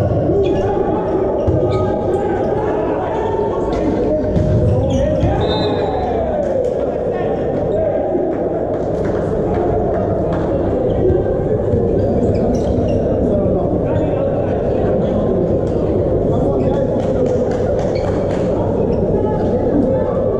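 Volleyball players shout and call to each other in a large echoing hall.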